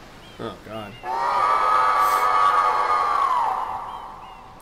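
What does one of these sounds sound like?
A cartoon monster lets out a long, loud roar.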